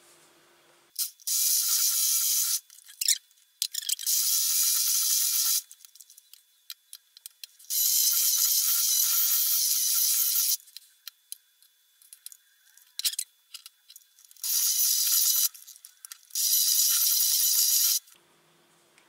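An electric hand mixer whirs in short bursts.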